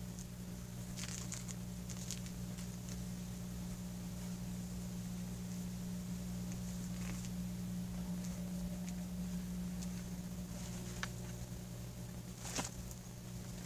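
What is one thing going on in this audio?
A knife scrapes and shaves wood in short, soft strokes.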